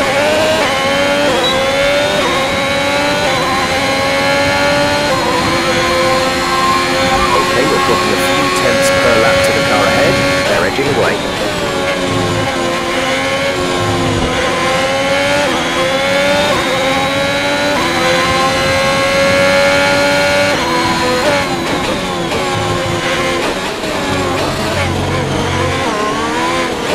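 A racing car engine screams loudly, rising through the gears and dropping sharply when braking.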